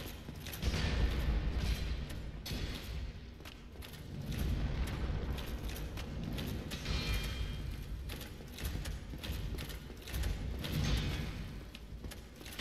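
Armour clanks as a knight runs across a stone floor.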